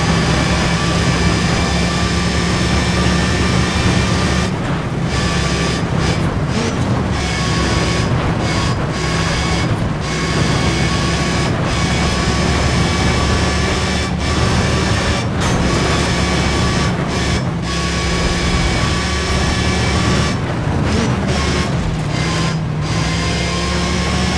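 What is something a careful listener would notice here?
A sports car engine roars loudly at high speed.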